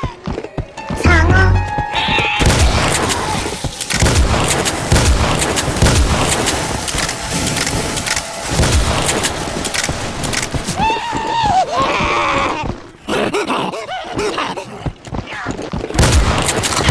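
A shotgun fires repeatedly in loud, booming blasts.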